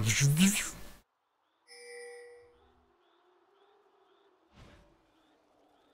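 Fantasy game spell effects whoosh and crackle in short bursts.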